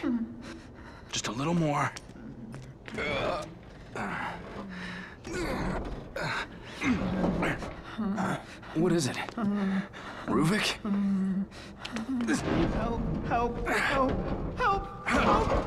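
A man strains and grunts.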